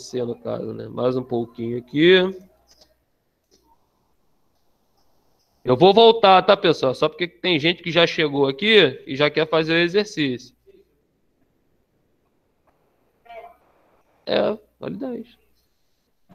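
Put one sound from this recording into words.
A man speaks calmly through a computer microphone, in pauses.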